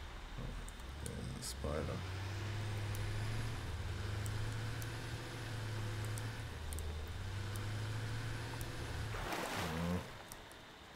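A vehicle engine hums steadily and then cuts off.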